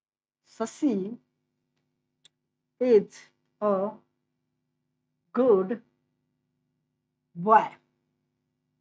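A young man speaks slowly and clearly in short phrases, close by.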